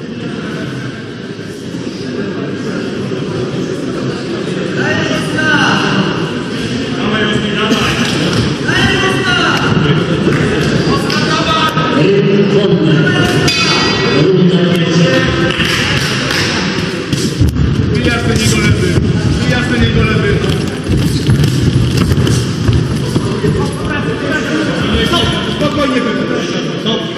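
A crowd murmurs and shouts in a large echoing hall.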